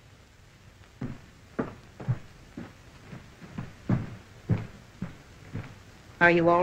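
Footsteps tap across a floor.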